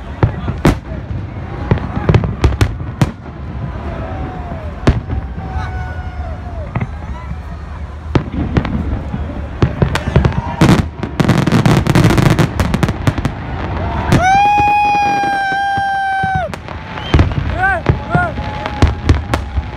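Fireworks bang and crackle overhead.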